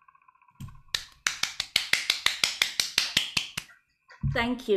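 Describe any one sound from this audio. A woman claps her hands quickly, heard through an online call.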